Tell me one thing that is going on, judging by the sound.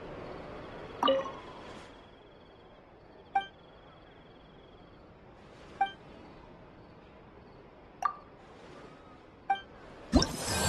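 Short chimes ring out at intervals.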